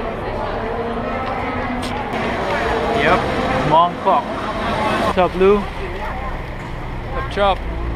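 A busy street crowd murmurs outdoors.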